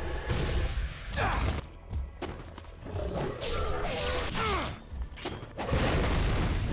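Swords clash and slash in a video game fight.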